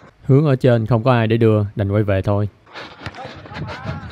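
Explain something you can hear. A football is kicked on artificial turf.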